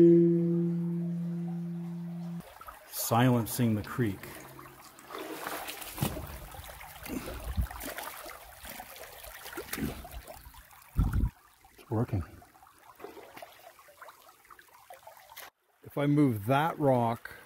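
Shallow water ripples and trickles over stones.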